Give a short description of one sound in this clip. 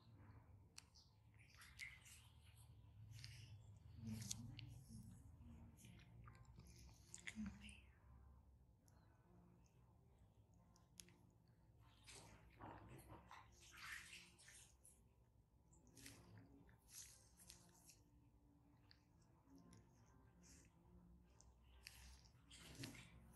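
A fine needle scrapes and picks softly against skin, close up.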